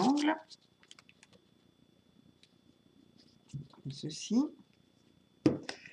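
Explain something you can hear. A plastic glue bottle squeaks as it is squeezed.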